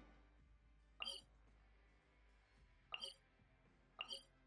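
Short bright menu clicks sound a few times.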